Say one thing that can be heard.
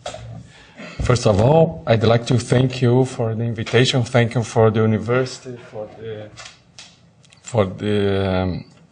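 A man speaks calmly through a microphone at a podium.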